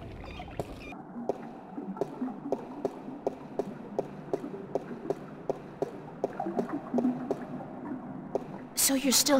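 Footsteps tap on a hard stone floor.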